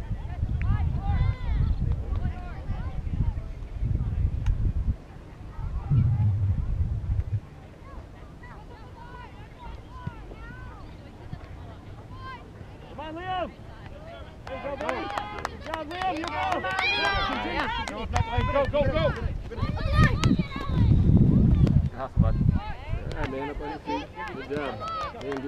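Adult spectators and players shout and call out across a field.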